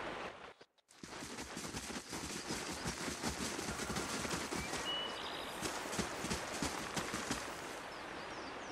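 Footsteps crunch steadily along a dirt path.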